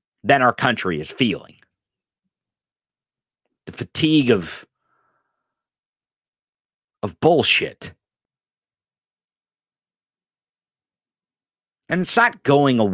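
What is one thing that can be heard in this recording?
A man speaks close into a microphone in short bursts with pauses.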